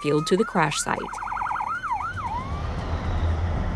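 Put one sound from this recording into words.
A fire truck siren yelps and wails.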